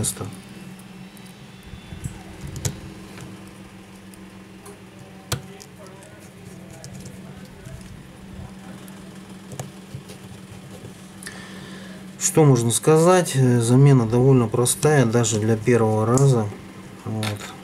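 A small screwdriver clicks faintly against tiny screws.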